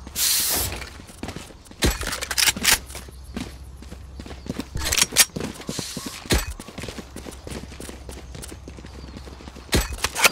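Short electronic clicks sound as menu items are picked.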